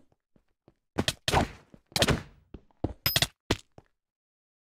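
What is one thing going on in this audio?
Sword blows land with short, sharp hits.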